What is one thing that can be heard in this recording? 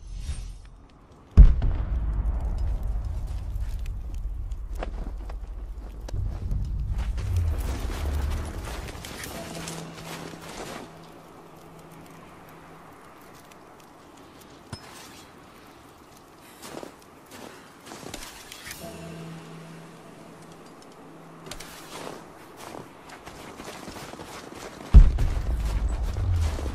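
A torch crackles and hisses.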